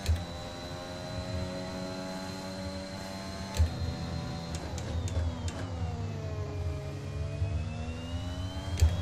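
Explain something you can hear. A racing car engine screams at high revs, drops in pitch while braking, then climbs again.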